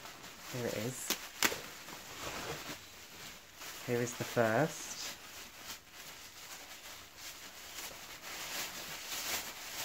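A plastic bag crinkles as hands scrunch it.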